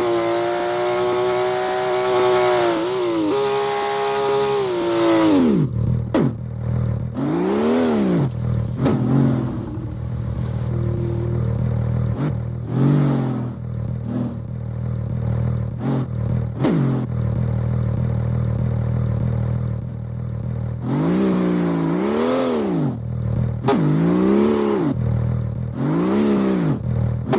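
A car engine revs high and rises and falls in pitch.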